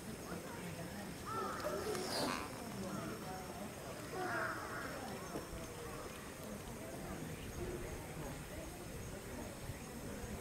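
Cloth rustles softly as an ape shifts beneath it.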